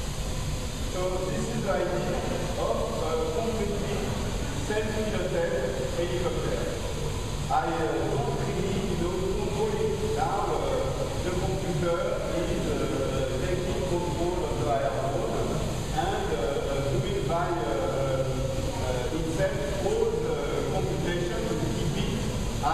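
A man speaks with animation in an echoing hall.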